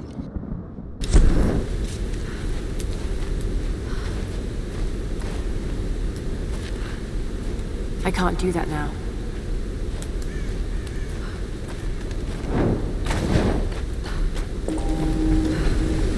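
Footsteps scuff over stone and gravel.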